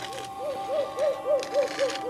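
A stick scrapes across dry dirt.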